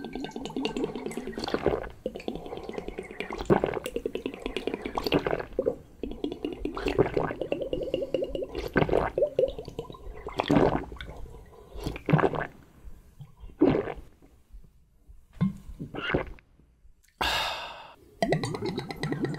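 A young man slurps liquid noisily from a glass up close.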